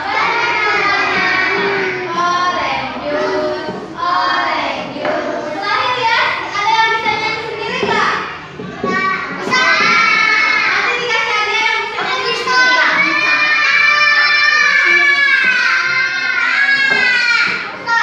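A young woman sings along, leading the children.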